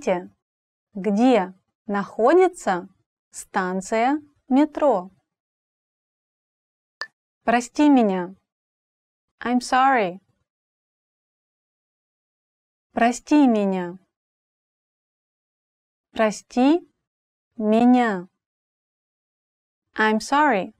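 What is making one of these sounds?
A young woman speaks calmly and clearly close to a microphone, in short phrases with pauses.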